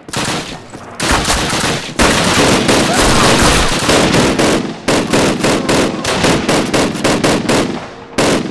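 A heavy machine gun fires rapid bursts.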